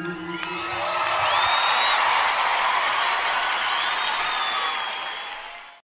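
A large crowd cheers and whistles loudly in a big hall.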